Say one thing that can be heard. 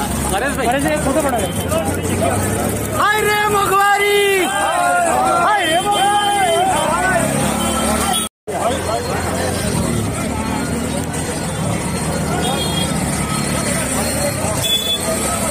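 Men in a crowd shout and chant outdoors.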